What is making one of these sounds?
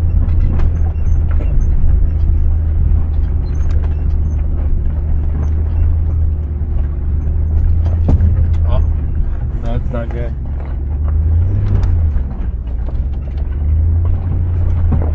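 Tyres crunch and rattle over a rough dirt track.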